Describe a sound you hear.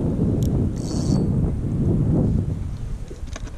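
Wind gusts against the microphone outdoors.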